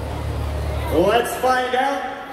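A man announces loudly through a loudspeaker in a large echoing hall.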